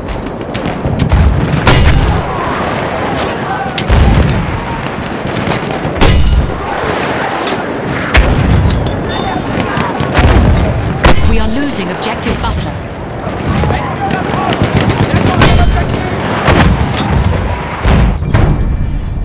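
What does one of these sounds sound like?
Heavy explosions boom again and again.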